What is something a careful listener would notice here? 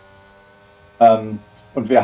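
A young man speaks loudly and with animation into a microphone.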